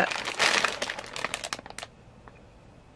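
Plastic foil packets crinkle and rustle in someone's hands.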